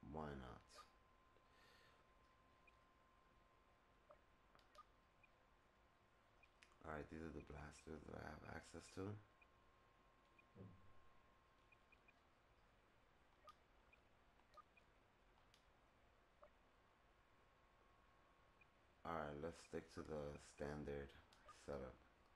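Soft menu clicks tick as selections change.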